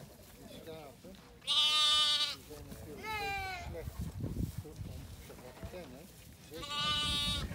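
Lambs bleat loudly and repeatedly close by.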